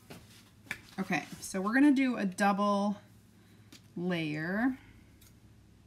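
A woman speaks briefly and calmly, close to a microphone.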